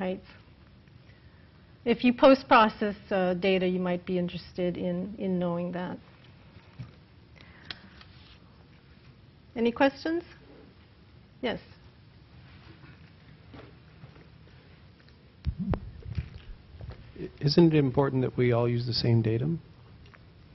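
A woman speaks into a microphone in a calm lecturing tone, with pauses.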